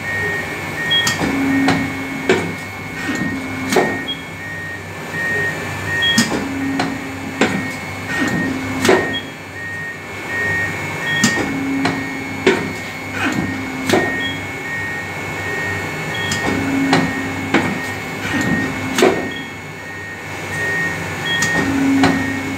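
A shearing machine hums steadily.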